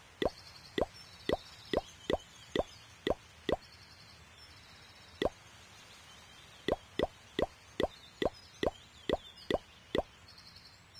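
Short soft clicks pop in quick succession, pausing now and then.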